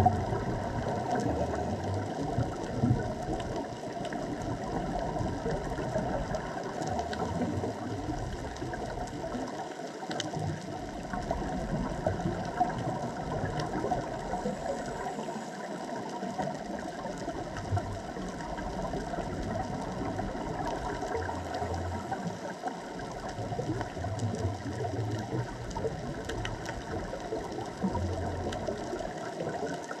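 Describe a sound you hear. Underwater, a steady muffled rushing fills the water.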